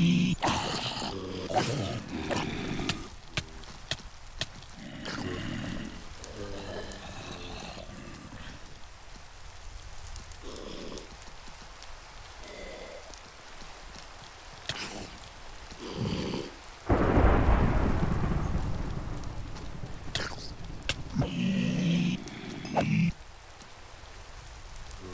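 Fire crackles.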